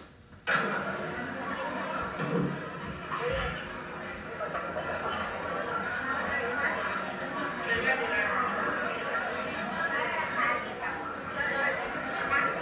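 A crowd of young girls murmurs and chatters nearby.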